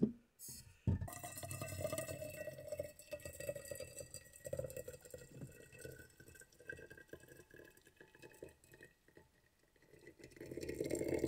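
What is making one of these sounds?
Hot water pours from a kettle into a cup, rising in pitch as it fills.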